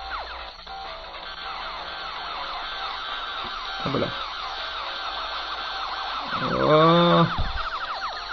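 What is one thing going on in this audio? Electronic laser shots zap rapidly, with quick falling chirps.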